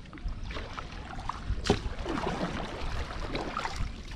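A paddle dips and splashes in the water.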